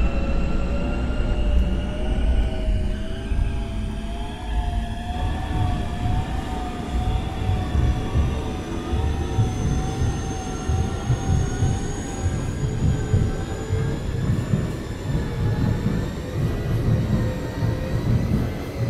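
A train's electric motor whines, its pitch wavering and slowly rising.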